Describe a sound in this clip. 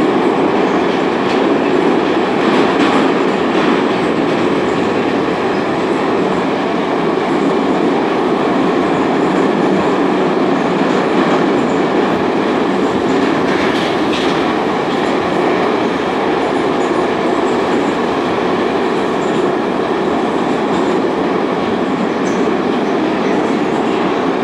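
Metal rattles and clatters inside a moving train car.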